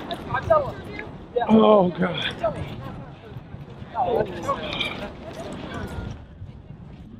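Several young adults chat nearby outdoors.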